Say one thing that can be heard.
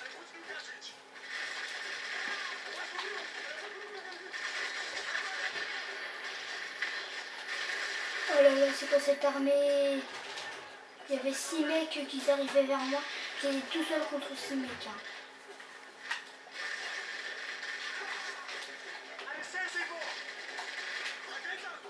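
Video game gunfire crackles through a small speaker.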